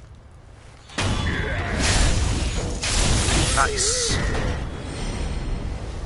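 A sword swings and strikes in a struggle.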